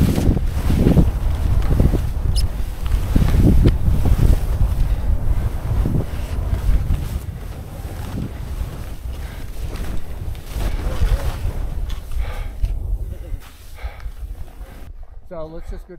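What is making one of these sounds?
Skis swish and scrape over snow.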